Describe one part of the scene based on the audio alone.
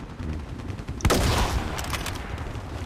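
A rifle fires a single loud, sharp shot that rings out and fades.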